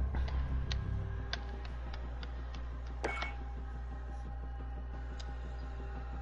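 Short electronic clicks tick as menu options are selected.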